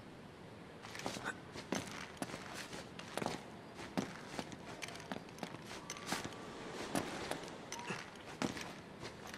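Footsteps knock on wooden planks.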